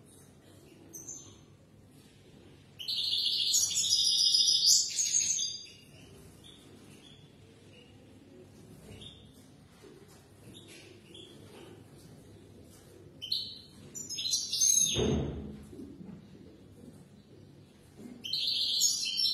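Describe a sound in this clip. A small bird sings loud, rapid, trilling bursts nearby.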